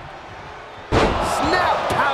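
A heavy thud of a body slamming onto a wrestling mat.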